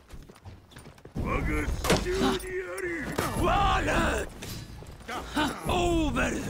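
Metal weapons clash and clang in quick blows.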